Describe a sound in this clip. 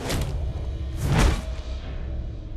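A sharp blow lands with a heavy thud.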